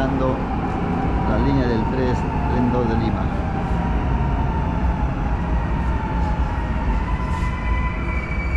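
A train's motor whines, falling in pitch as it slows.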